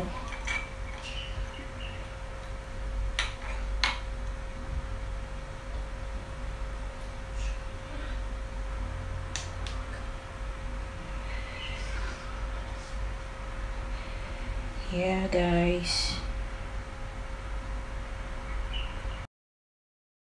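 Light plastic clicks and taps sound as wicks are set in small cups.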